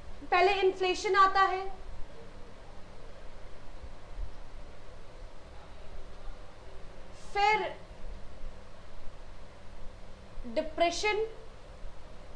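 A young woman speaks calmly in short bursts, close by.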